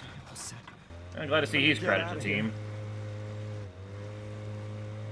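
A boat's outboard motor hums steadily.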